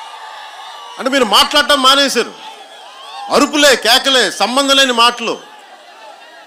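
A man speaks forcefully into a microphone, heard through loudspeakers outdoors.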